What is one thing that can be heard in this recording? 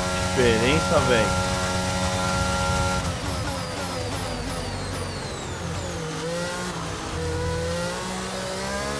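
A racing car engine screams at high revs, dropping in pitch as gears change down.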